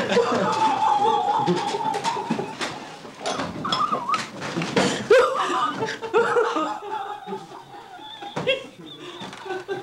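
A man laughs loudly and heartily nearby.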